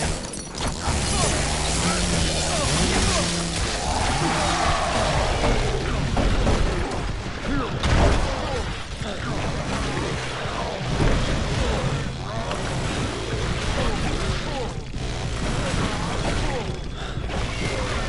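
Blows thud and slash in a close fight.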